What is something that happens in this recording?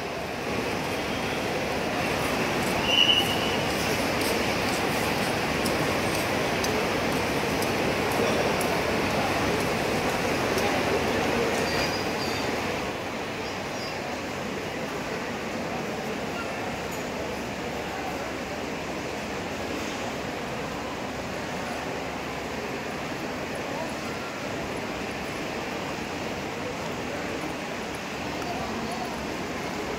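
A crowd murmurs and chatters under a large echoing roof.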